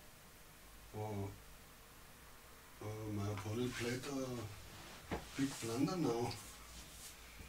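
A middle-aged man comments calmly and close to a microphone, in short phrases.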